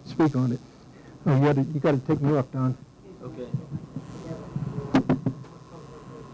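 An elderly man speaks calmly through a microphone in a room.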